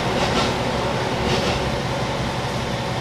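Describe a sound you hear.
A passing train rolls by close alongside.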